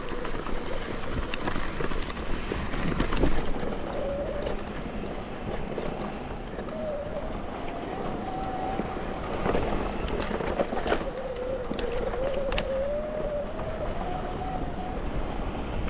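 A mountain bike's frame and chain rattle over bumps.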